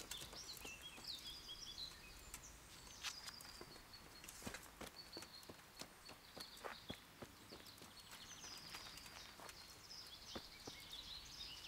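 Leaves rustle as a plant is picked by hand.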